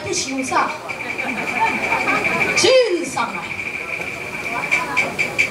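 A woman sings in a high, wavering operatic voice through a loudspeaker.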